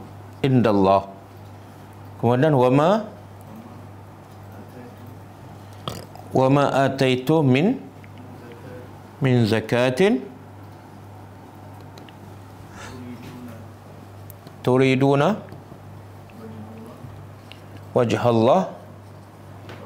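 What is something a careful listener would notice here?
An elderly man recites short phrases in a melodic voice, heard through a microphone.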